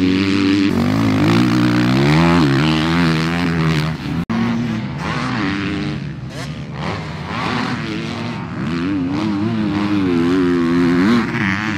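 A dirt bike engine revs and whines, rising and falling as it rides around a track outdoors.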